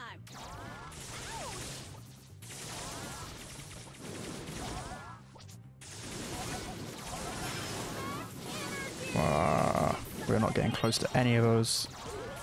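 Game blasts and magic effects pop and whoosh rapidly.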